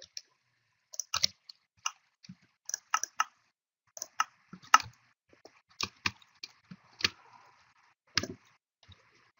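Game menu buttons click sharply several times.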